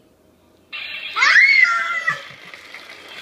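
A toddler squeals with delight.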